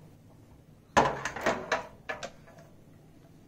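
A metal pan knocks against a lid.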